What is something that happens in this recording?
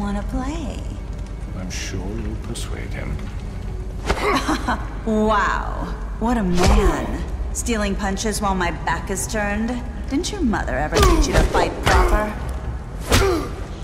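A woman speaks with a mocking tone.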